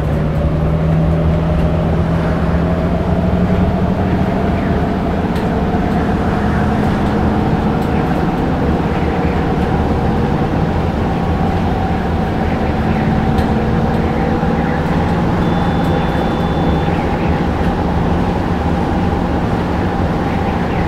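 Tyres rumble on asphalt.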